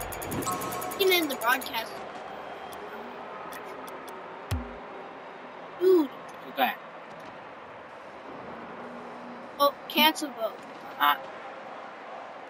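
Two young men talk through a webcam microphone.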